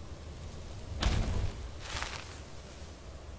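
A magic spell bursts with a loud, bright whoosh.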